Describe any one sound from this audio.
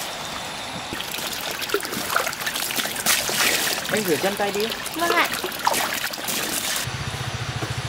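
Water splashes onto feet and sandals.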